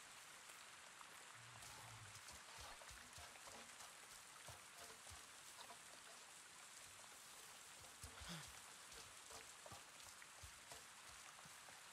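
Footsteps rustle through dense undergrowth.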